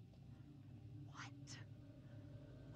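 A young woman exclaims sharply.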